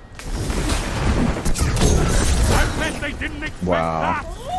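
Electric energy crackles and booms loudly.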